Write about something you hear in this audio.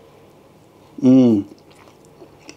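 A young man hums with pleasure while eating.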